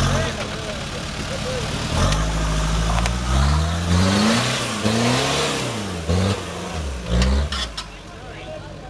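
An engine revs hard, rising and falling in pitch.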